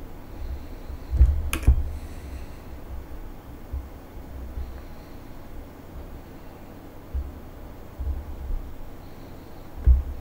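A jet engine rumbles low and steady, with occasional deep thumps.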